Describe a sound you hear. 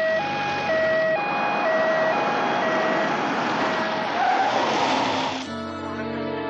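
An ambulance siren wails loudly nearby.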